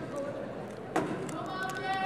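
A volleyball thumps off a player's hands.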